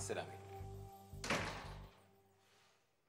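A door latch clicks and a door shuts with a thud.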